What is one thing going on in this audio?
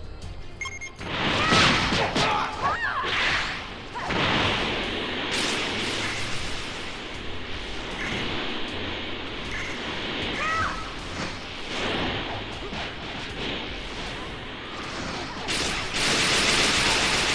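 Energy blasts whoosh and explode in rapid bursts.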